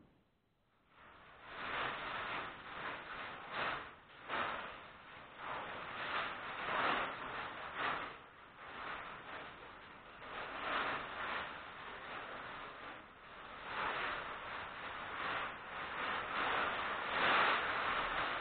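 A plastic sheet rustles and crinkles as it is handled close by.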